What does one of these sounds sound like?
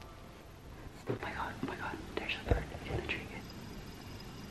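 A woman talks close by, calmly.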